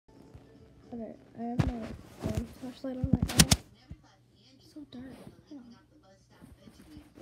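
A young girl speaks softly and close by.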